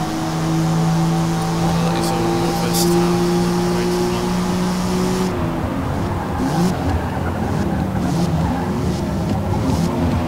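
A racing car engine roars at high revs, holding a steady pitch, then drops as the car slows.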